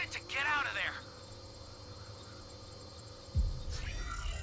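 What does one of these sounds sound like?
A time machine hums steadily as it powers up.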